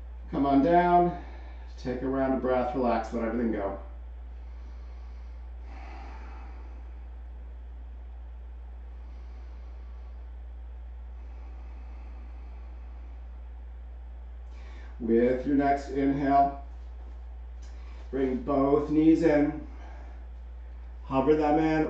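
A man speaks calmly and slowly through a close microphone, with long pauses.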